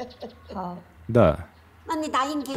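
A young woman answers briefly and quietly.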